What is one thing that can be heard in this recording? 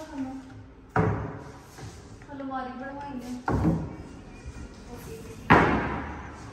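Cabinet doors bang as they are opened and shut.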